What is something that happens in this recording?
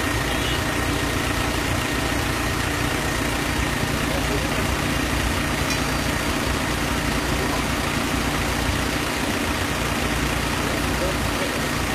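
A fire hose sprays water onto a smoking car with a steady hiss.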